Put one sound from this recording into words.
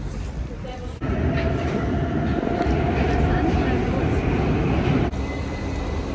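A train rumbles along a track.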